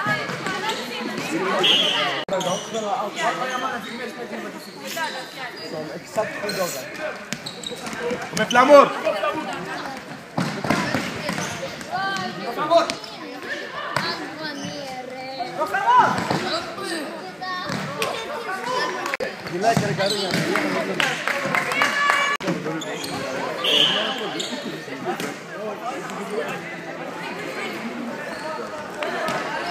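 Teenage boys shout to each other during play in an echoing sports hall.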